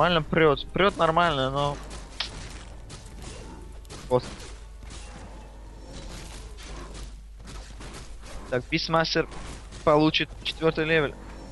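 Swords clash and spells crackle in a game battle.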